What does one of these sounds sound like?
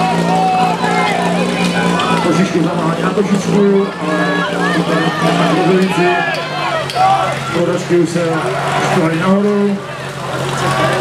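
A crowd of people cheers and shouts loudly nearby.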